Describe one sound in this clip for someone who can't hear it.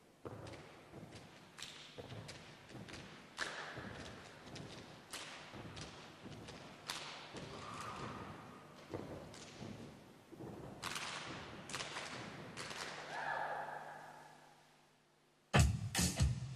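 Feet stomp on a hard floor in a steady rhythm.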